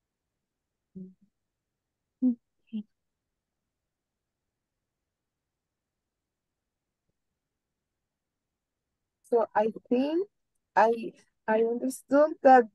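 A young woman speaks calmly through an online call, in short bursts.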